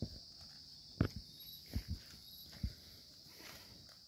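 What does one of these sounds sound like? Leaves and branches rustle as a man pushes through bushes.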